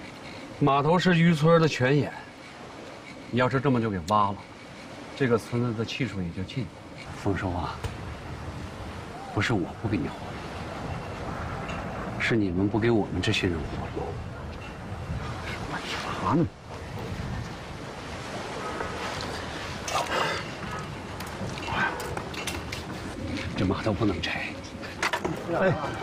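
A middle-aged man speaks calmly and seriously up close.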